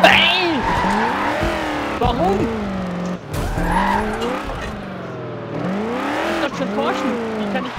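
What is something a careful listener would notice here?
A racing car engine roars, its pitch rising and falling as it shifts gears.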